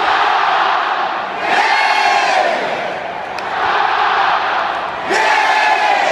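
A huge stadium crowd roars and cheers outdoors.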